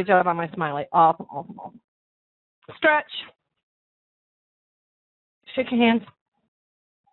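A woman speaks with animation into a microphone, in short bursts with pauses.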